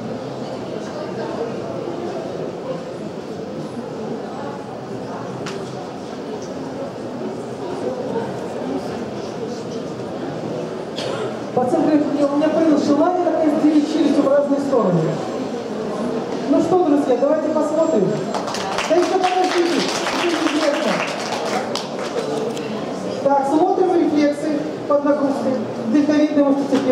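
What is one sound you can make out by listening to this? A middle-aged woman speaks steadily through a microphone and loudspeaker.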